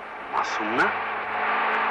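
A man calls out sharply.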